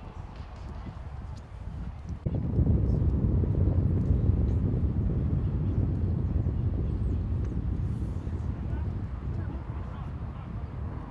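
Horses' hooves thud softly on grass in the distance.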